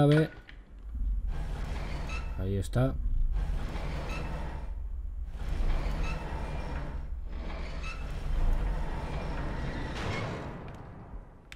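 A heavy metal shutter grinds and rattles as it slowly rises.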